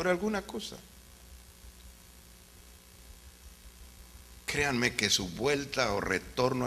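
A man preaches with animation through a microphone, with pauses.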